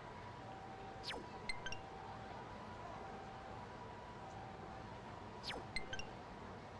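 A short whoosh and soft electronic chimes sound as a game menu is browsed.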